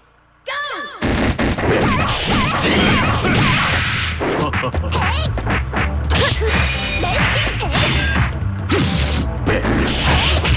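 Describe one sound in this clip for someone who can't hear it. Punches and kicks land with sharp smacks and thuds.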